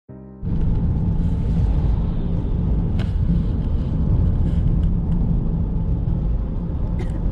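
Passing cars whoosh by close on the road.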